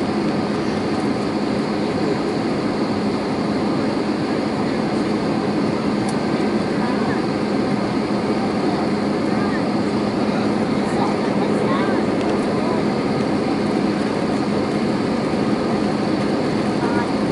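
Jet engines of an Airbus A320 roar steadily in flight, heard from inside the cabin.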